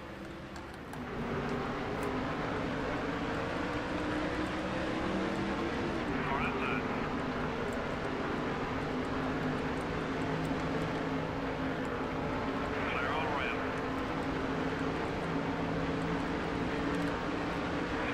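Race car engines roar steadily as the cars speed up.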